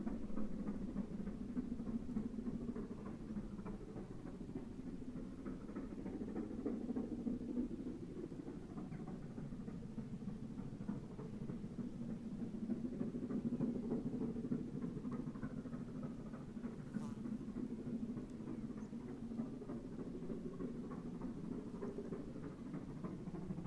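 A steam locomotive chugs steadily in the distance, pulling a train.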